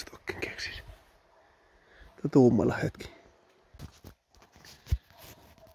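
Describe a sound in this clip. Footsteps rustle through dry leaves and undergrowth.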